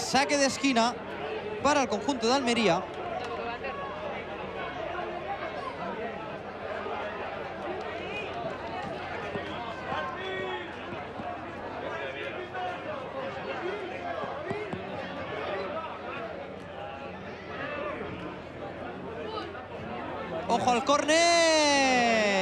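Spectators shout and cheer loudly from the sideline.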